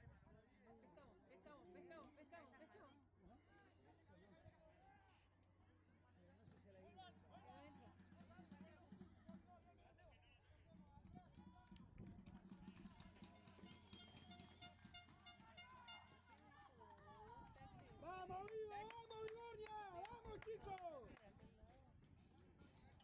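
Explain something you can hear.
Young players call out to each other across an open field.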